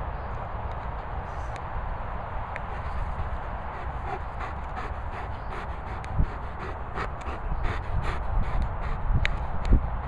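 A large dog pants heavily close by.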